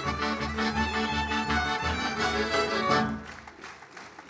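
Lively folk music plays loudly over loudspeakers.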